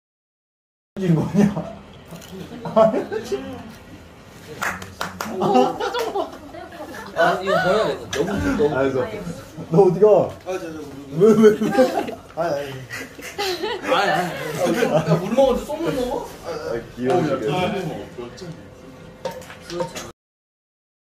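A young man talks and laughs nearby with animation.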